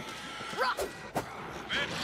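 A heavy blow strikes a body.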